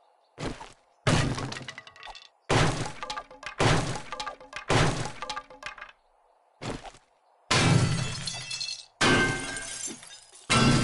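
A heavy metal tool bangs repeatedly against a door.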